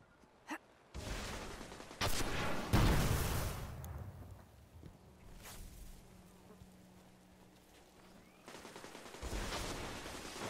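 A heavy gun fires loud shots.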